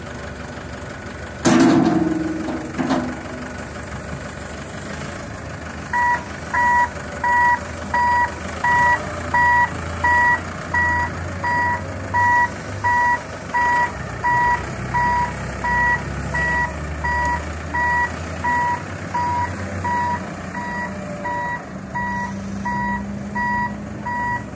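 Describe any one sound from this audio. A diesel backhoe loader engine runs.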